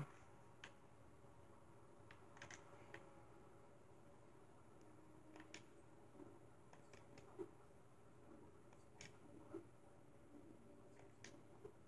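Video game sound effects play quietly from a television, with scattered short clicks and bleeps.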